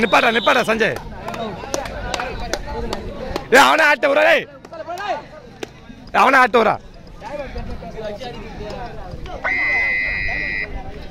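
A crowd of men shouts and cheers loudly outdoors.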